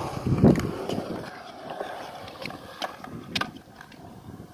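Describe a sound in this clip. A skateboard clacks sharply on concrete.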